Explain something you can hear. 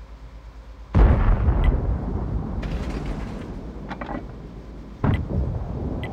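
A tank cannon fires with a loud, sharp boom.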